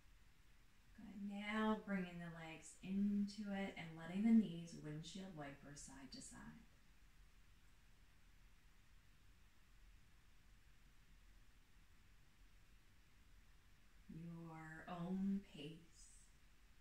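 A woman speaks calmly and softly, close to the microphone.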